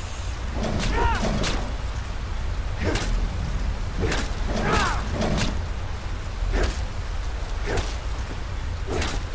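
Wind rumbles low and steadily.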